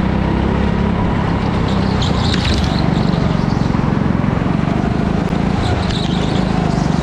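A go-kart engine buzzes loudly up close.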